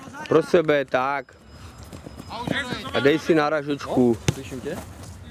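A football is kicked with a dull thud.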